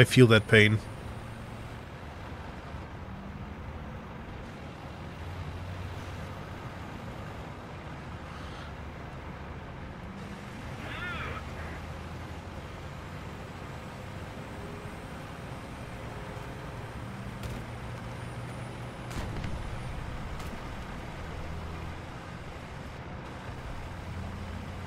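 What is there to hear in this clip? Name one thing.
Tank tracks crunch through snow.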